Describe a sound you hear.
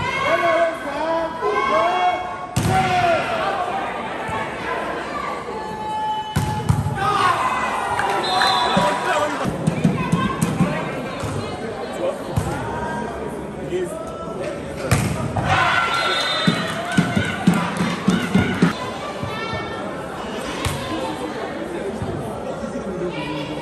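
A crowd of spectators cheers and shouts around a volleyball court.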